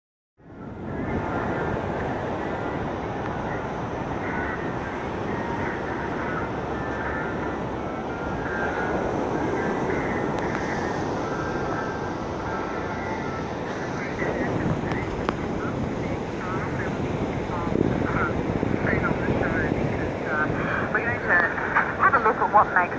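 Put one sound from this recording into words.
Waves crash and wash steadily onto a beach nearby.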